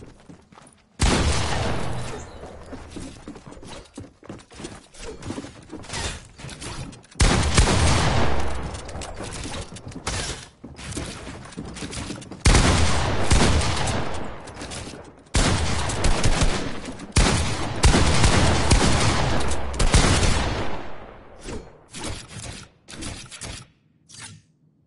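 Building clatter comes in quick bursts.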